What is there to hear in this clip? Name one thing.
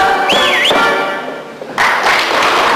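A choir sings a folk song with loud voices.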